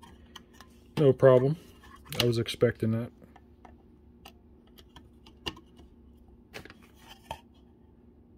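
A plastic display clicks against a circuit board as it is fitted into place.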